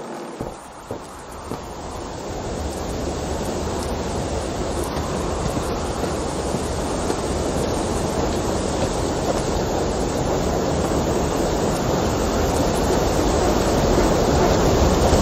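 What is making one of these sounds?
A waterfall rushes steadily, growing louder.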